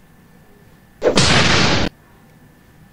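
A fighter lands with a short, loud rushing burst.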